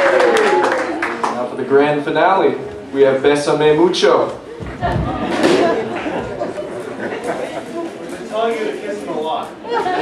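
A young man speaks into a microphone through a loudspeaker.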